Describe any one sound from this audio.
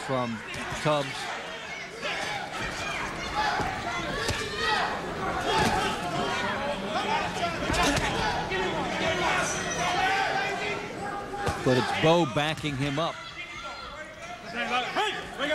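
Gloved punches land with dull thuds.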